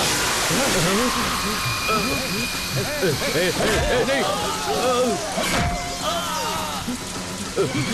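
Water sprays and splashes loudly from a burst pipe.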